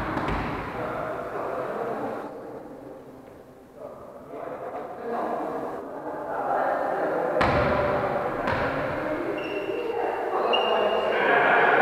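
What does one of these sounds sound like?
Men call out to each other in an echoing hall.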